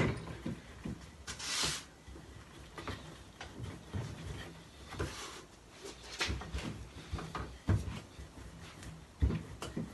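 A rolling pin rolls and thumps on a wooden board.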